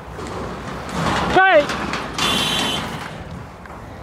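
A pickup truck drives up a slope.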